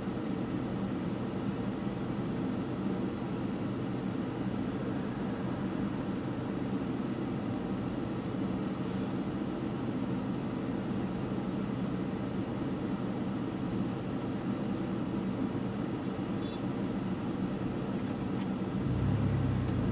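Traffic passes by on the street.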